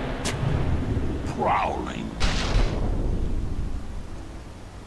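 A magic spell bursts with a shimmering whoosh.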